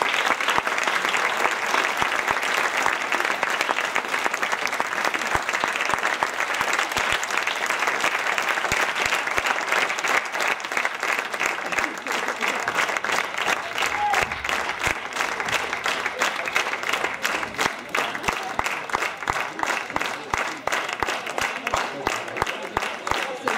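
An audience applauds loudly.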